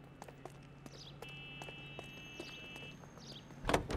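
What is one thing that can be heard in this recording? A man's footsteps walk on pavement.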